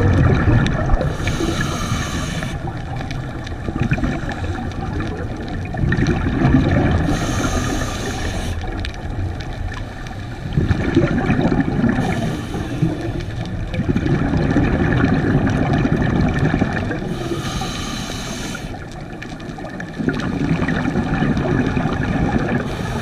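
Water swishes and rumbles low and close, as if heard underwater.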